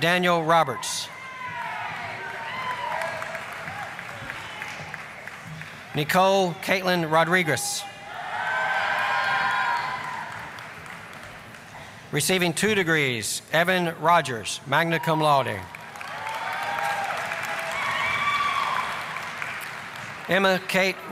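An audience applauds and cheers in a large hall.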